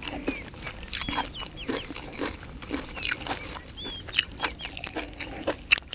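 Fresh leaves snap and crackle as they are torn.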